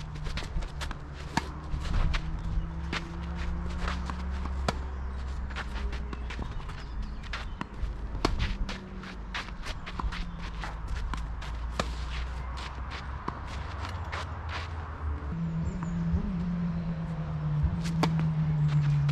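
Tennis balls thud off rackets in a steady rally outdoors.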